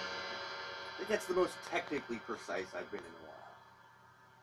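A drummer taps softly on a drum with sticks.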